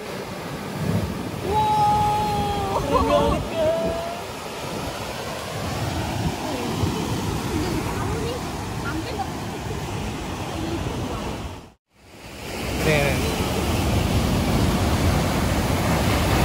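Waves crash and surge against rocks close by.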